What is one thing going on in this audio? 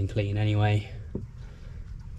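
Oil streams and splashes into a bucket.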